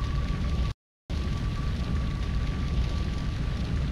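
Flames roar on a burning ship.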